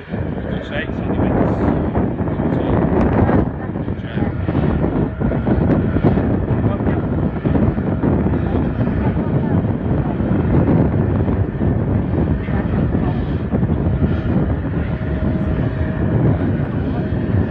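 A jet aircraft roars steadily in the distance as it rolls down a runway.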